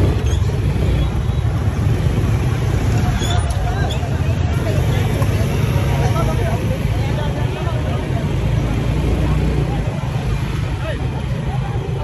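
A motorbike engine hums steadily close by as it rides along.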